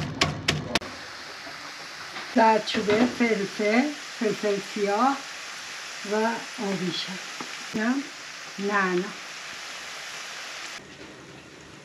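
Onions sizzle in a frying pan.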